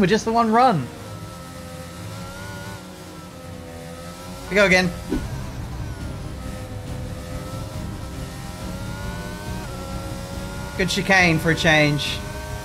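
A racing car engine whines steadily and rises in pitch as it speeds up.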